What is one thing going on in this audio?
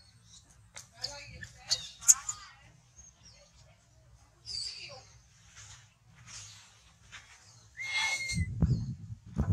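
A baby monkey squeals and shrieks shrilly in short bursts.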